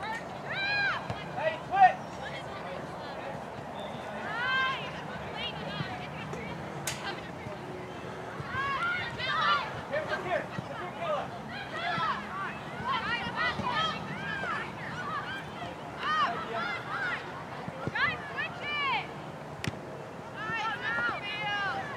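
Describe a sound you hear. A crowd of people chatters and cheers far off outdoors.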